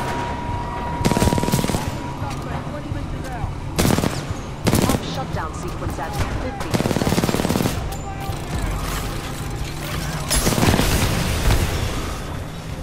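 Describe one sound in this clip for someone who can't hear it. A rifle fires loud bursts of shots in an echoing space.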